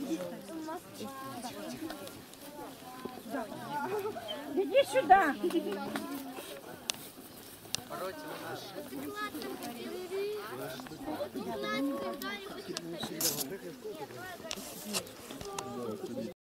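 A group of women and children chat and call out nearby, outdoors.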